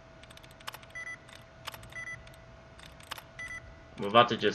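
A computer terminal beeps in short electronic tones.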